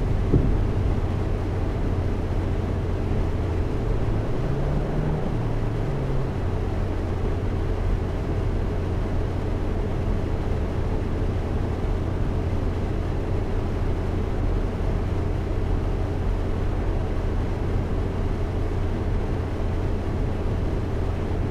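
A bus engine hums steadily as it drives along.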